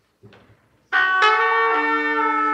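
A trumpet plays a few sustained notes.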